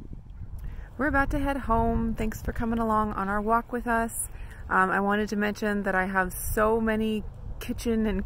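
A young woman talks calmly, close by.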